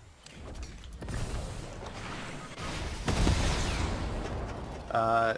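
A rocket launches with a rushing whoosh.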